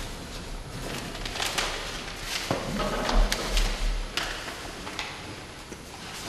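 A newspaper rustles as it is unfolded.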